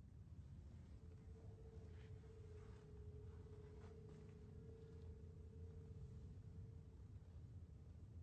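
A steady, soft ringing tone hums from a rubbed glass.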